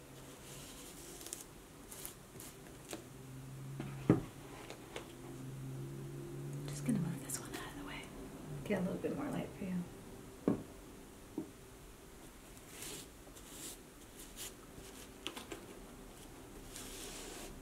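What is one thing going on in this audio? A cloth rubs and brushes against a leather boot.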